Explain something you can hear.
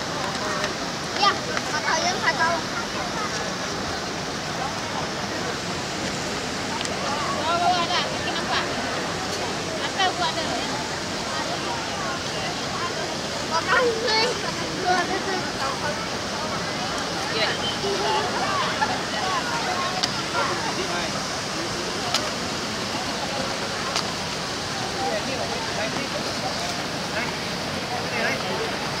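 Small children babble and squeal.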